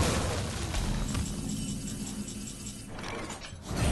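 A bright fanfare chimes to announce a new turn.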